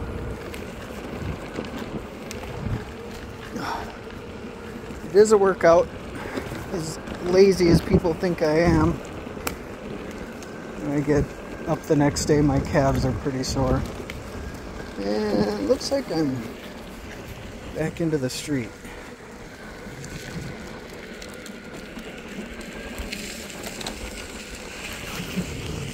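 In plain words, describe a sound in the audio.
Small stones crunch and pop under the wheels.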